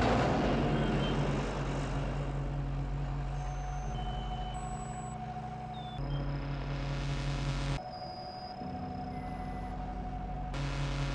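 A bulldozer's diesel engine rumbles and roars steadily.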